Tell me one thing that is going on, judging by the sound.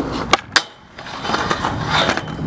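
A skateboard scrapes and grinds along a metal rail.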